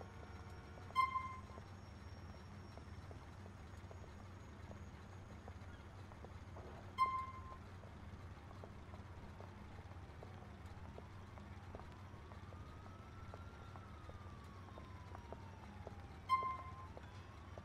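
A short electronic chime sounds now and then.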